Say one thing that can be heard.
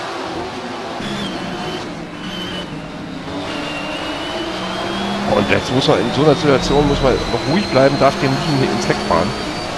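A racing car engine revs high from close by, rising in pitch as it accelerates.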